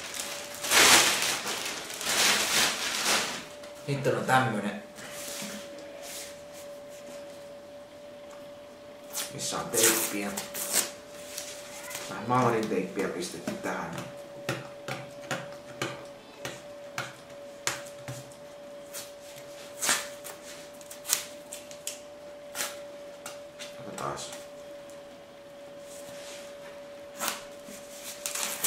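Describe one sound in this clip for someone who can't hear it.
A sheet of rolled paper rustles and crinkles close by.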